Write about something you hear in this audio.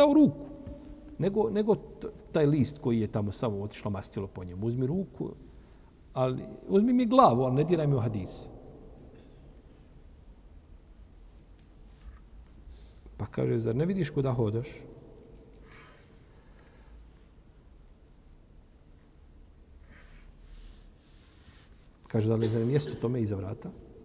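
An elderly man speaks calmly into a microphone, close by, with pauses.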